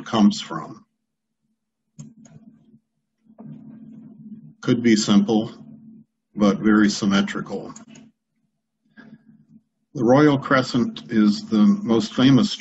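An older man speaks calmly over an online call, pausing between phrases.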